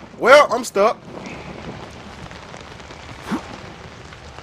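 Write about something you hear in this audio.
A young man exclaims loudly into a microphone, close up.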